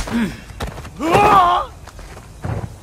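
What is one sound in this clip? A young woman grunts with effort.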